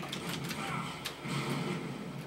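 An arcade game explosion booms.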